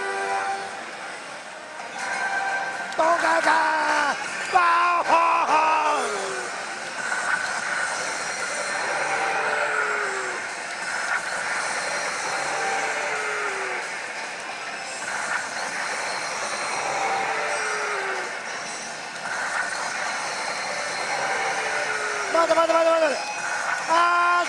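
Slot machine music and sound effects play loudly from a speaker.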